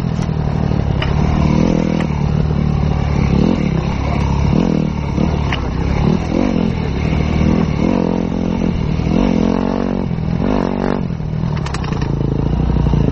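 Stones and gravel crunch and knock under the tyres.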